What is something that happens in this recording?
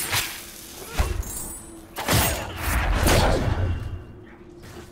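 A blast booms and rumbles.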